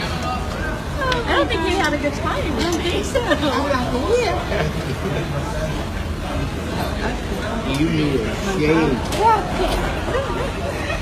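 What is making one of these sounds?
Two elderly men sob and cry out with emotion close by.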